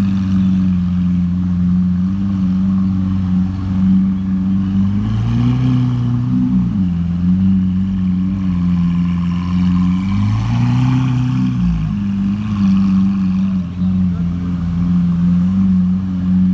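A powerful car engine rumbles steadily at idle, revving up briefly twice.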